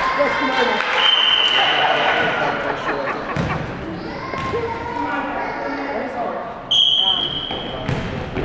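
Sneakers squeak sharply on the wooden floor.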